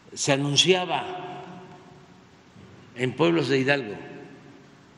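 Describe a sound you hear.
An elderly man speaks calmly into a microphone in a reverberant room, in short phrases.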